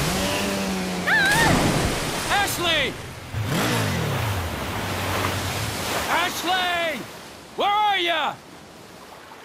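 A jet ski engine revs and whines.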